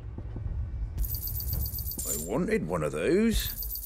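A bright chime rings as an item is sold.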